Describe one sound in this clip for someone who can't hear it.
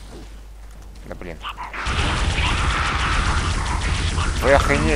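Monstrous creatures screech and hiss close by.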